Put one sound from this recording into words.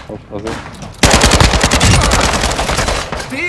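Rapid gunfire rattles loudly close by.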